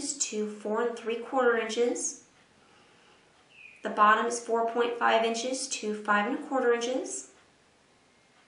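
A woman speaks calmly and clearly into a microphone, close by.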